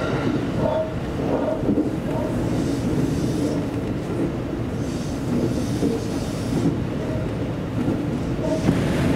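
An electric commuter train runs along the track, heard from the cab.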